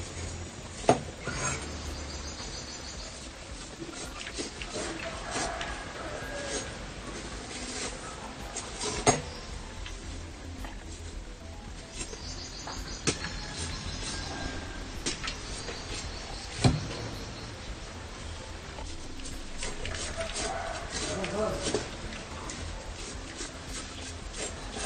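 A knife chops sharply into a coconut husk.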